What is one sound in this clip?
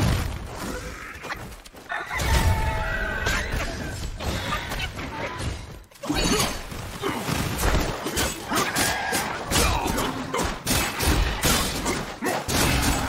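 Heavy blows land with loud thuds and whooshes.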